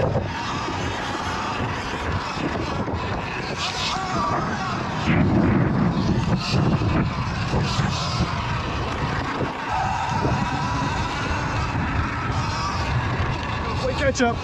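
Tyres crunch and rumble over dirt.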